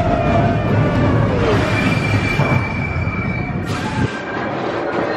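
A roller coaster car rumbles and clanks loudly along its track.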